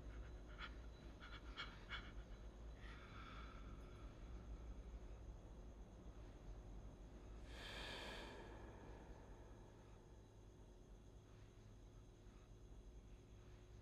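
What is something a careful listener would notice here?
An elderly man speaks weakly and breathlessly, close by.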